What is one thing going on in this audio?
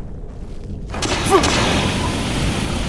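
Fire roars and crackles loudly.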